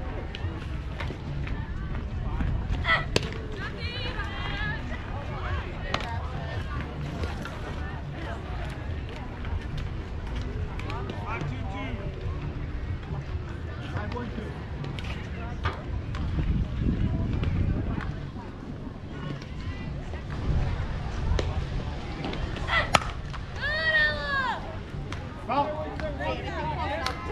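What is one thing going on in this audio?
Young players shout and cheer from across an open field.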